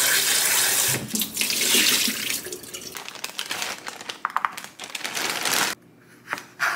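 Water pours out of a bowl into a sink.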